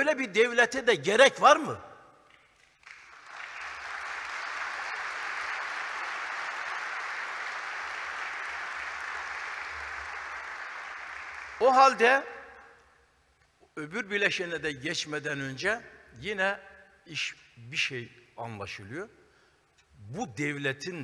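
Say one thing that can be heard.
An elderly man speaks with animation through a microphone in a large hall.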